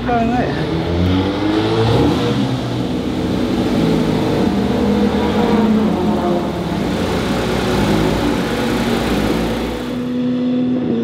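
A sports car engine idles and revs with a deep rumble.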